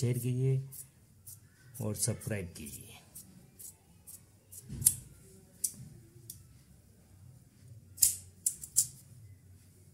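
Scissors snip and crunch through cloth.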